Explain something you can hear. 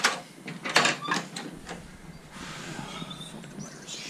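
A door swings open to the outdoors.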